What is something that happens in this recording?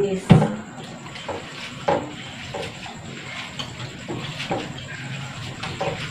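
Water runs into a sink.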